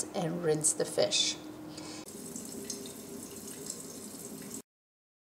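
Tap water runs and splashes into a metal sink.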